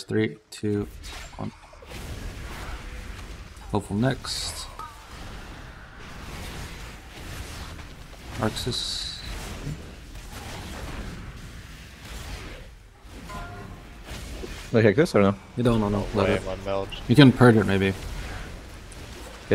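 Magic spells whoosh and crackle in a fast battle.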